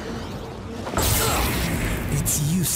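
Flames roar and whoosh.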